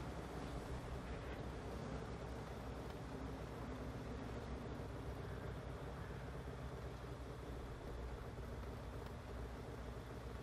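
A tank engine idles with a low, steady rumble.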